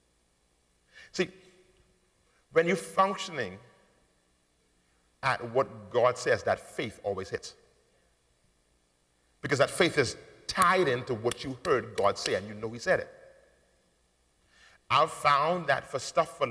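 A man preaches with animation through a microphone, pausing between phrases.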